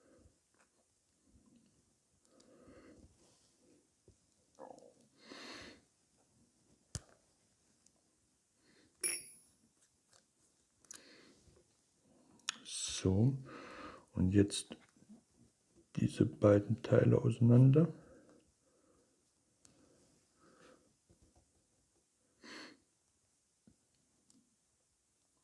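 Small metal parts click and scrape as they are twisted together.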